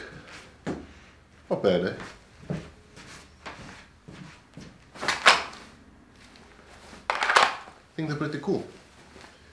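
A man talks close by, with pauses.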